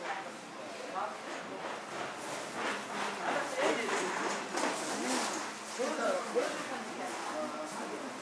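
Footsteps walk on a hard floor in an enclosed space.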